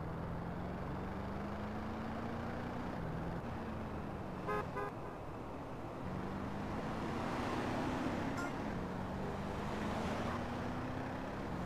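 A car engine roars steadily at high speed, its pitch rising slowly as it shifts gears.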